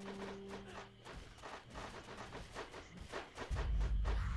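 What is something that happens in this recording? Quick magical strikes clash and crackle.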